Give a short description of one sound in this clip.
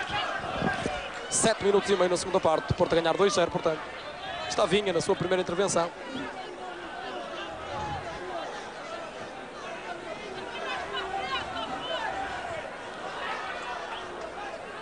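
A large stadium crowd murmurs in the distance.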